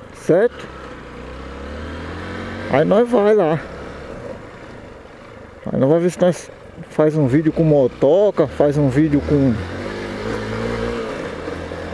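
A motorcycle engine hums steadily while riding slowly.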